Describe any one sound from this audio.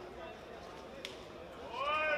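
A boxing glove smacks against a body.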